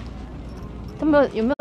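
A young woman exclaims loudly close by.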